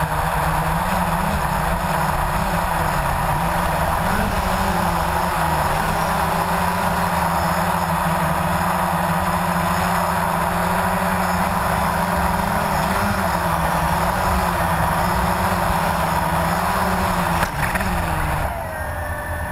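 A small drone's propellers buzz steadily close by.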